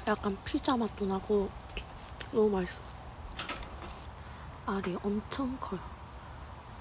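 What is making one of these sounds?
A young woman speaks softly and cheerfully close by.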